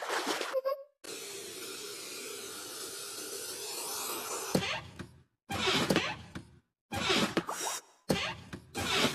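A hair dryer blows with a steady whir.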